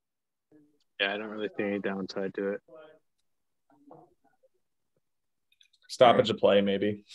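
Young men talk over an online call.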